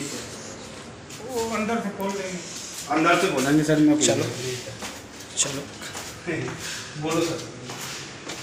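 Footsteps tread down stairs.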